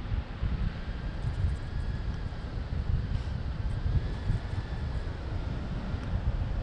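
Strong wind rushes and buffets against a microphone outdoors.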